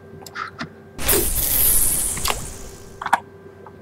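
A fishing rod whooshes through the air as a line is cast.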